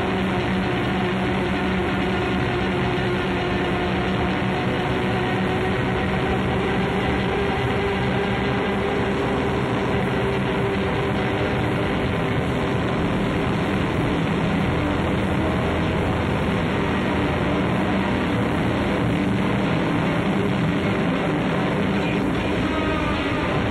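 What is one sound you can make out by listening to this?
Electric guitars play loud, droning rock music.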